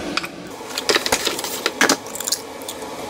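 An egg cracks against a bowl's rim.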